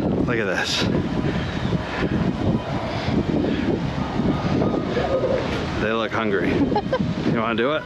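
A man talks casually, close to the microphone.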